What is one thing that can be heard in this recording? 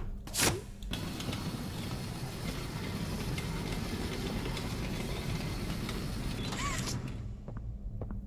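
A mine cart rumbles and rattles along metal rails.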